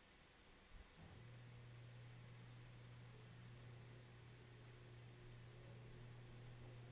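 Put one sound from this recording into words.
A synthesizer plays a low, steady droning tone.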